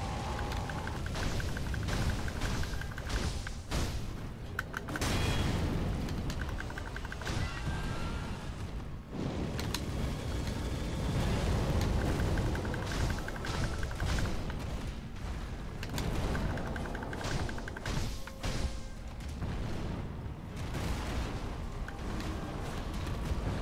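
A huge beast growls and roars.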